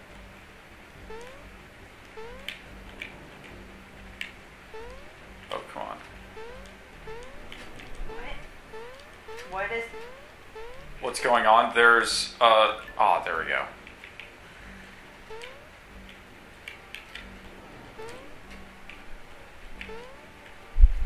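Soft, quick footsteps patter in a game.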